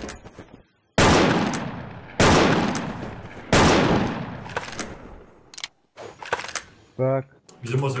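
An assault rifle fires in a video game.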